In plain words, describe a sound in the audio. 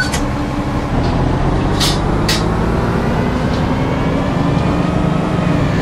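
A bus engine rises in pitch as the bus speeds up.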